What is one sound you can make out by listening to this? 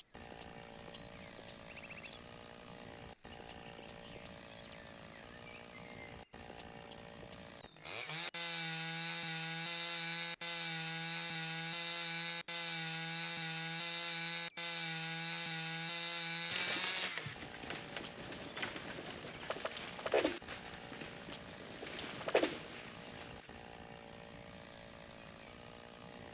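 A chainsaw idles with a low, steady rattle.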